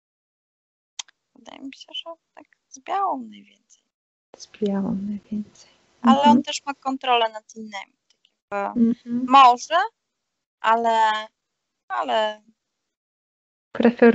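A young woman talks with animation through an online call.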